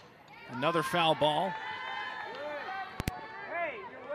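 A crowd cheers in the stands.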